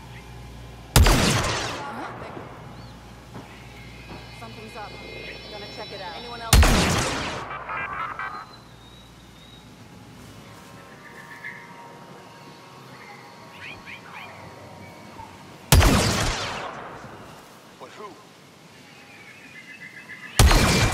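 A rifle fires loud single shots that boom and echo away.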